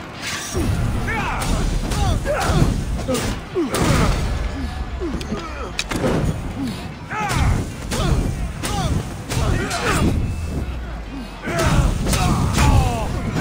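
A flaming sword swooshes through the air again and again.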